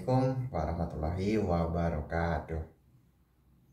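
A young man speaks clearly and calmly, close by.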